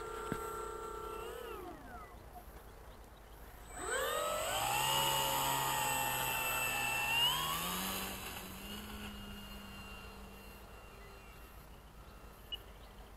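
A model plane's electric motor whines loudly, rising and falling in pitch, then fades as the plane flies away.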